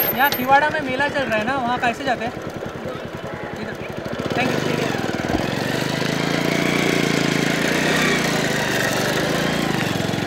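A motorcycle engine idles and then revs as it pulls away.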